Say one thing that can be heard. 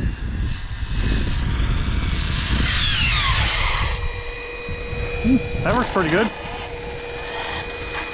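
A toy car's electric motor whines as it speeds along the road.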